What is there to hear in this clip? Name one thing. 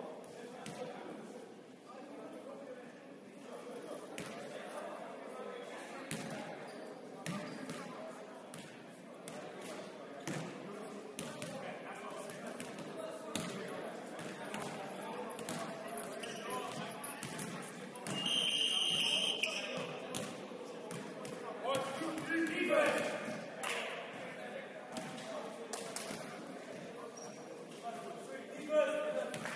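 People chatter throughout a large echoing gym.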